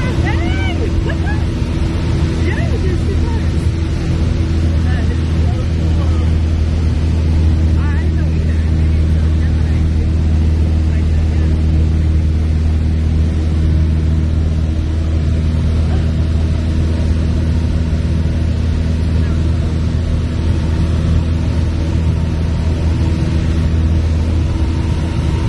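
A small plane's propeller engine drones steadily and loudly from close by.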